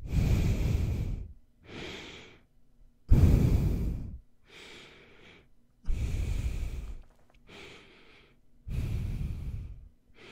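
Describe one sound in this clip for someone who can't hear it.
A young man breathes heavily through his nose close into a microphone.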